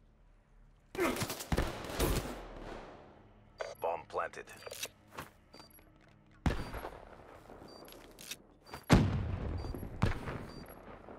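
Loud explosions boom and rumble away.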